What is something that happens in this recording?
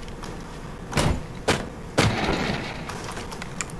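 A metal crate clicks and clatters open.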